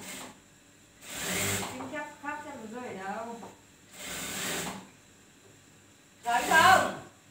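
A sewing machine runs in short bursts.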